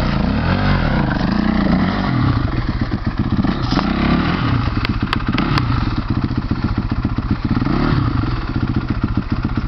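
Rocks crunch and clatter under a dirt bike's tyres.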